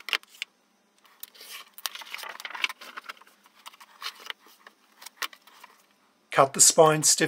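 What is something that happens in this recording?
A blade scrapes along paper against a metal ruler.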